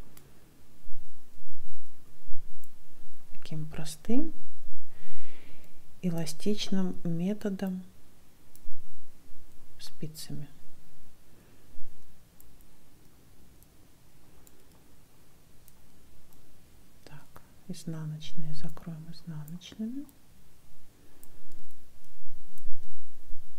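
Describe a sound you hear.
Metal knitting needles click and tap softly against each other.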